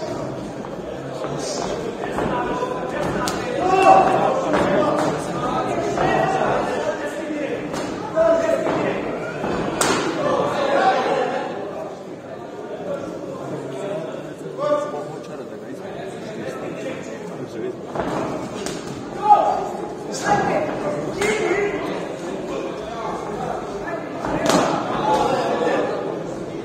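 Punches thud against padding.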